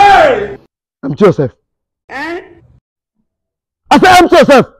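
A man shouts loudly up close.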